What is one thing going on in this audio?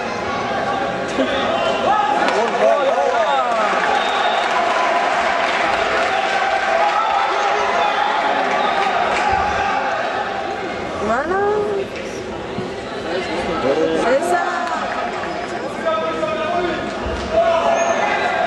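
Gloves thump against bodies as fighters trade blows.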